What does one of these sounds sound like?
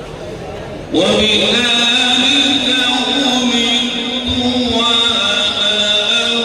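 An elderly man chants loudly in long, drawn-out melodic notes through a microphone.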